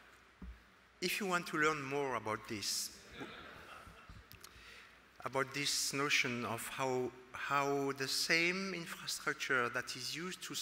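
A middle-aged man speaks with animation through a microphone in a large room.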